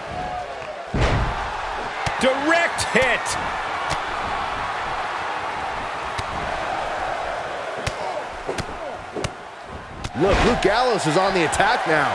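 Heavy bodies thud onto a wrestling mat.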